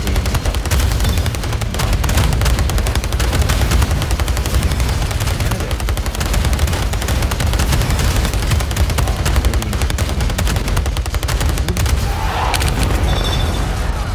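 Gunfire rattles rapidly and without pause.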